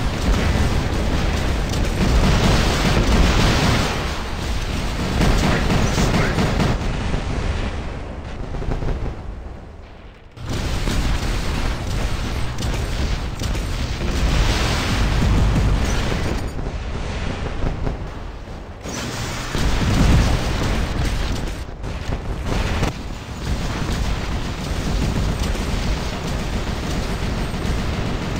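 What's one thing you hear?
Large robotic machines stomp and whir as they move.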